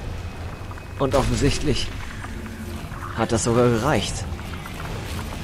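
A large creature roars.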